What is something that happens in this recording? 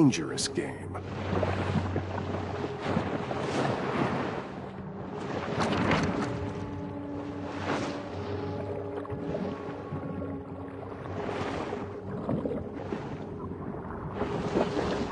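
Water rushes and swirls in low muffled swells underwater.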